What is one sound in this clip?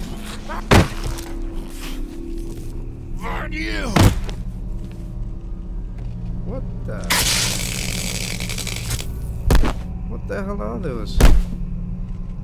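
Heavy blows land with dull thuds against a body.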